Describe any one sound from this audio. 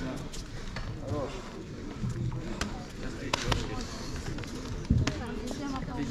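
Several men and women chatter nearby in a large echoing hall.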